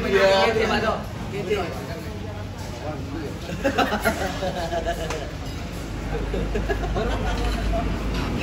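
Young men talk and chatter nearby.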